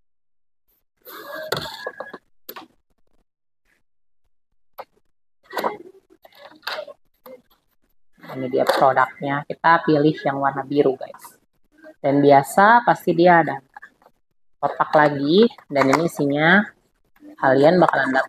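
Cardboard packaging slides and scrapes as a box is opened.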